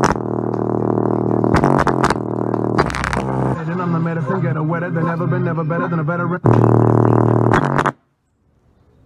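Loud music with a deep bass plays from a portable speaker.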